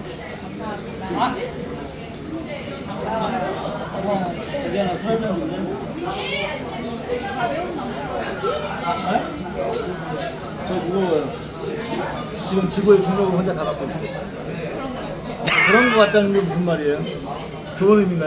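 Several women chat and laugh together close by.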